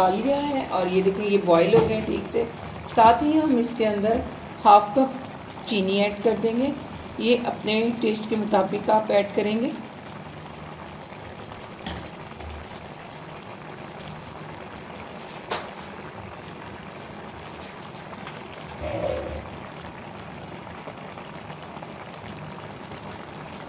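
Tomatoes simmer and sizzle gently in a hot pan.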